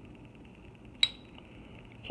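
A metal lighter lid snaps shut with a sharp click.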